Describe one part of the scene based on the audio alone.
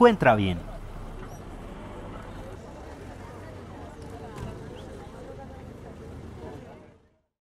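A crowd of people murmurs outdoors in the distance.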